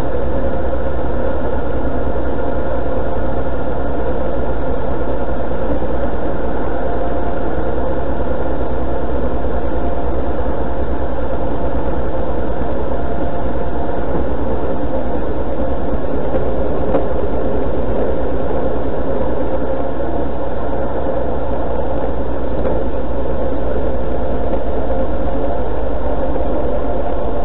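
A vehicle's engine drones as it drives along a road at speed.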